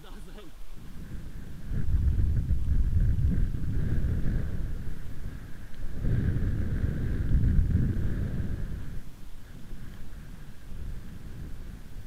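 Wind buffets loudly against the microphone outdoors.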